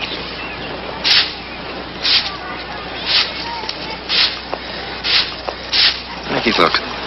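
A rake scrapes the ground in steady strokes.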